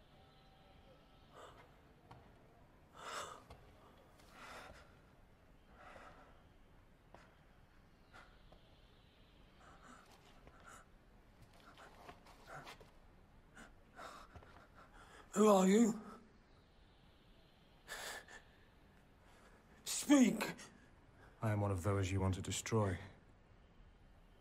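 A man groans and gasps in pain.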